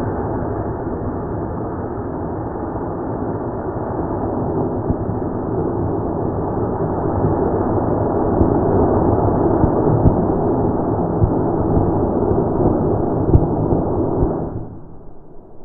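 A model rocket motor roars high overhead.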